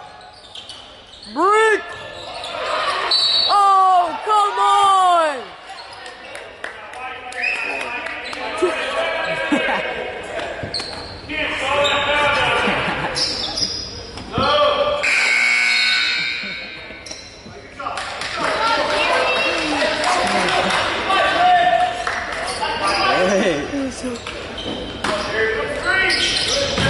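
A crowd of spectators chatters and calls out in a large echoing gym.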